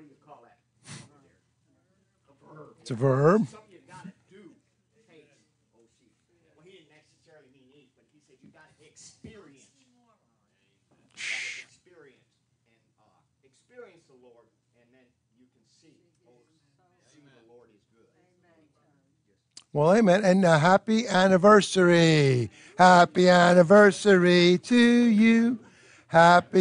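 A middle-aged man speaks through a microphone, quietly at first with long pauses, then loud and drawn out.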